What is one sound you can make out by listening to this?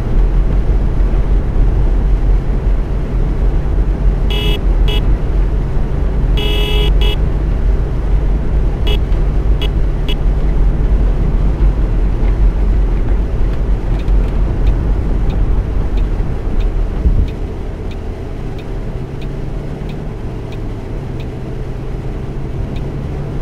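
A bus engine drones steadily, easing off partway through.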